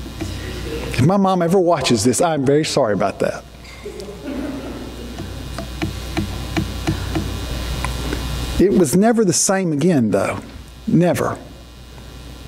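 A middle-aged man speaks with animation through a microphone in an echoing hall.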